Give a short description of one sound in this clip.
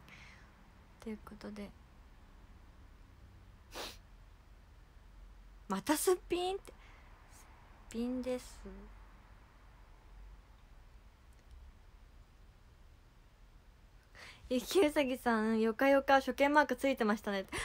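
A young woman speaks softly and close by, in short bursts with pauses.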